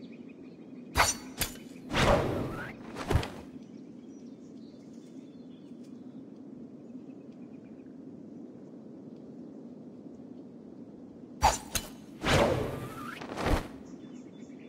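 A whoosh sweeps past as a game character leaps through the air.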